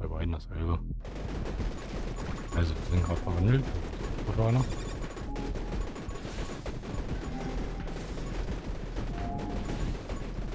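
Rapid electronic blasts and zaps from a game crackle continuously.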